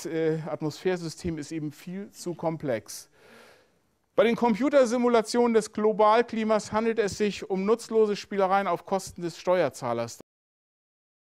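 A middle-aged man lectures calmly through a microphone in a room with a slight echo.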